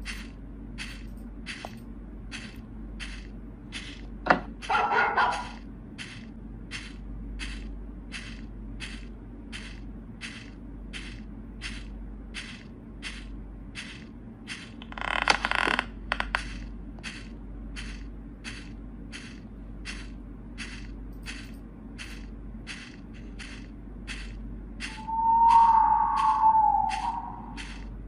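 Footsteps tap steadily at a walking pace.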